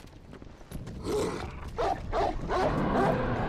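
A large wolf growls and snarls.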